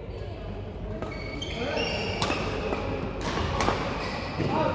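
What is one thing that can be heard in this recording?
Rackets strike shuttlecocks with sharp pops in an echoing hall.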